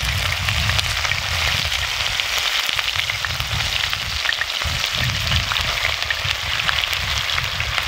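Meat sizzles and crackles in a hot pan over a fire.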